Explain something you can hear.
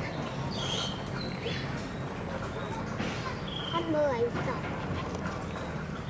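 Monkeys chew and nibble on food close by.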